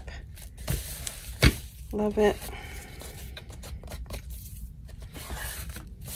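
Hands pat and smooth paper flat.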